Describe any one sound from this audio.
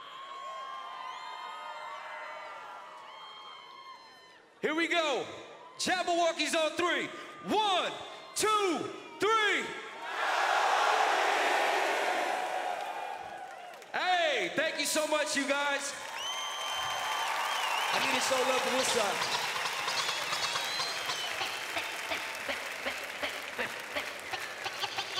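A large crowd cheers and screams in a big echoing hall.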